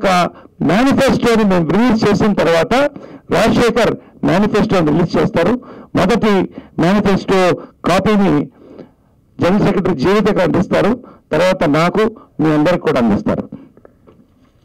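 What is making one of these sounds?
A middle-aged man speaks with animation into a microphone, heard through a loudspeaker.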